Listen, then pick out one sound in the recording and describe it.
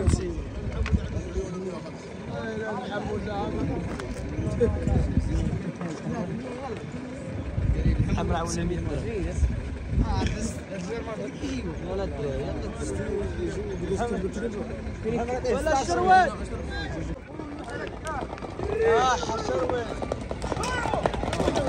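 Several men talk and call out at a distance.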